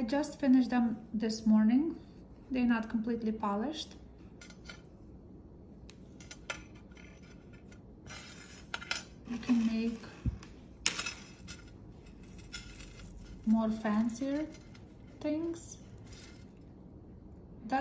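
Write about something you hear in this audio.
Small metal chain jewellery clinks softly as it is handled.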